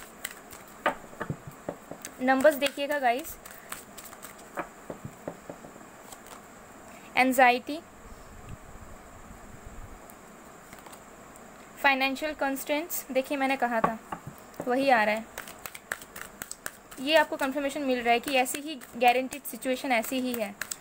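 Playing cards riffle and slap softly as they are shuffled and laid down.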